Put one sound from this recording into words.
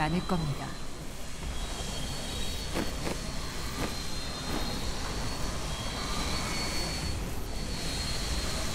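Fiery blasts whoosh and burst again and again.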